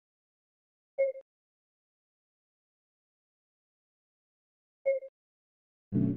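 Short tones chime twice.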